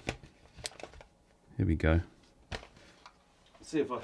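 Paper rustles and crinkles as an envelope is handled.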